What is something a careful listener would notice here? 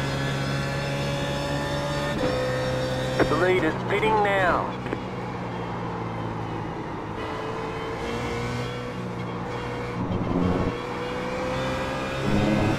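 A racing car engine hums steadily.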